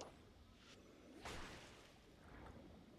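A magical blast bursts with a bright rushing whoosh.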